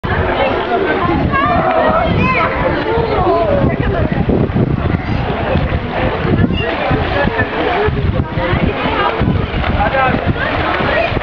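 Water splashes as swimmers kick and stroke in a pool.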